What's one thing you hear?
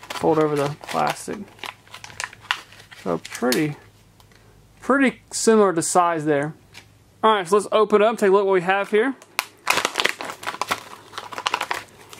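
Plastic wrapping crinkles and rustles in hands.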